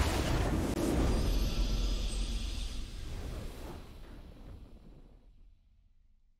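A triumphant game fanfare swells and fades away.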